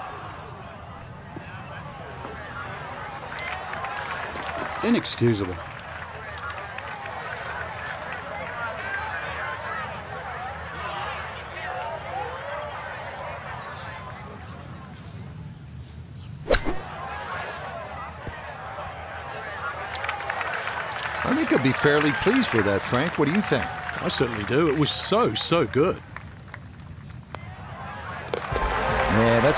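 A crowd murmurs and chatters outdoors.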